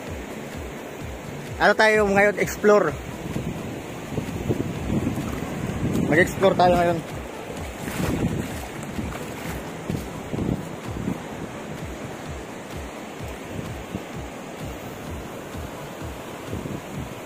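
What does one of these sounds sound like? Waves wash on a shore.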